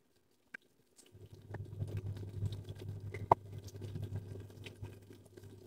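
Chopsticks tap and scrape against a metal pot.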